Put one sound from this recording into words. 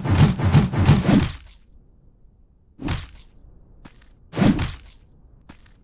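Heavy blows land with sharp impact bursts.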